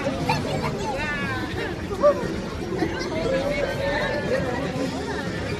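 A young woman shrieks and talks excitedly up close.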